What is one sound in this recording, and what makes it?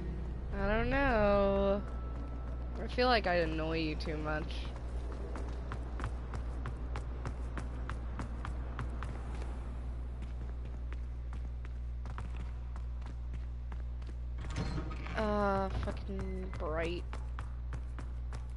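Quick footsteps tap on a hard stone floor.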